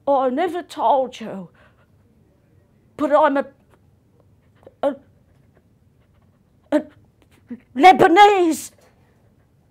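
A middle-aged woman speaks expressively in short bursts, close to a microphone.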